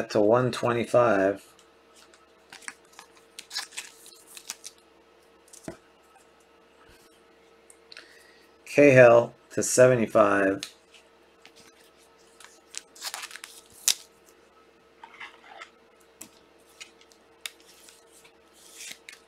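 Cardboard and plastic card wrappers rustle and crinkle in hands.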